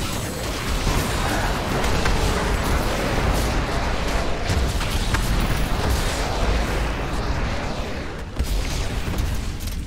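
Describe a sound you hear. Fiery spells explode and crackle in rapid bursts.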